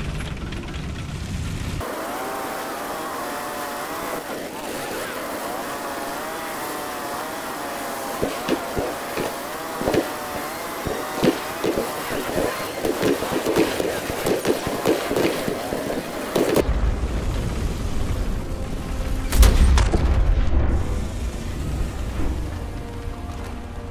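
A tank engine rumbles low.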